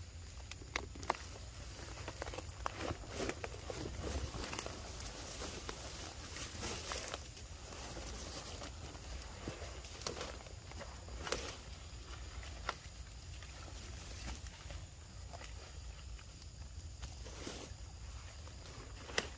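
A monkey chews and smacks on soft fruit up close.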